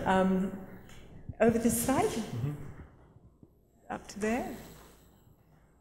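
A woman speaks with animation into a microphone in an echoing hall.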